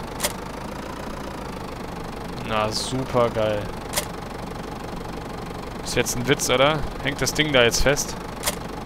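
A tractor engine idles.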